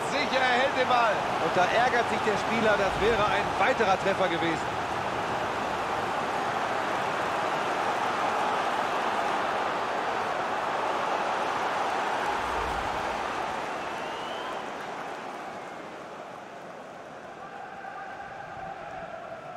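A stadium crowd roars and chants loudly, then quietens.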